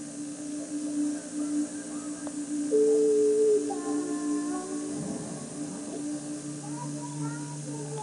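Video game music and sound effects play from a television speaker.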